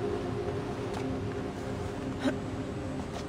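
A climber's hands grab and scrape against a stone wall.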